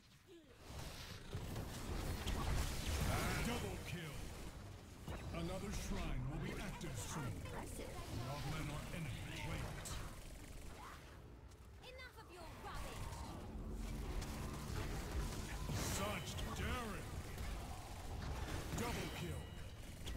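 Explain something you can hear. Magic spells burst and weapons clash in a chaotic fantasy battle.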